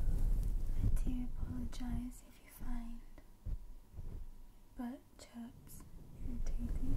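A young woman whispers softly right into a microphone.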